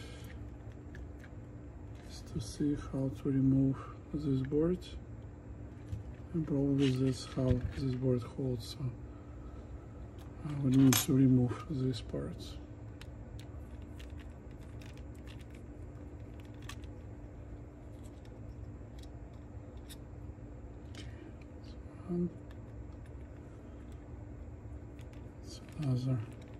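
Small metal and plastic parts click and rattle as they are handled close by.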